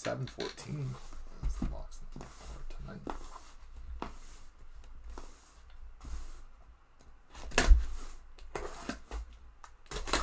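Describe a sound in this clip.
Cardboard rustles and scrapes as a box is turned over by hand.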